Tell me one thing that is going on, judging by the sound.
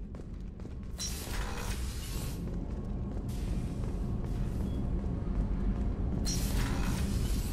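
Footsteps walk along a metal floor.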